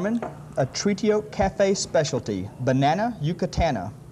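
A plate is set down on a table.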